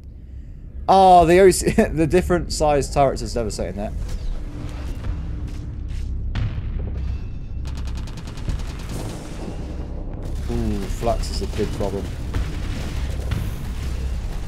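Laser beams zap and hum in bursts.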